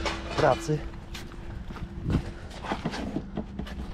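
A van's side door slides open.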